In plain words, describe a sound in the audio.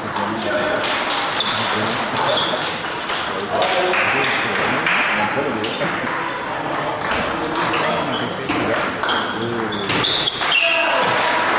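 A table tennis ball clicks back and forth off paddles and a table in a large echoing hall.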